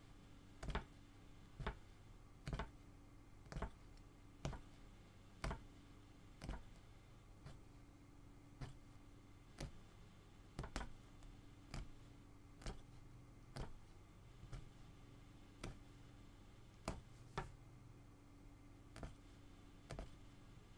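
A punch needle pokes through taut fabric with soft, regular thumps.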